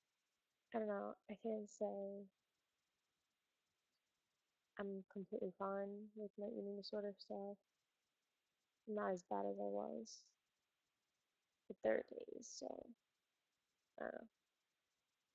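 A young woman speaks calmly and close to a microphone, in short phrases with pauses.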